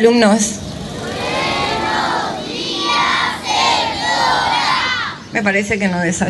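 A crowd of children sings together outdoors.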